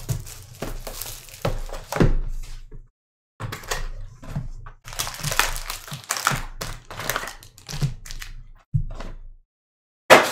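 Foil card packs crinkle as hands tear and handle them.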